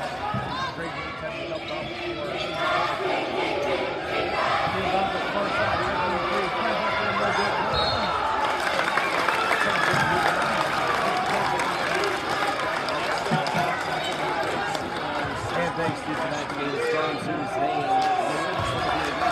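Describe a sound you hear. A large crowd cheers and chatters loudly in an echoing gym.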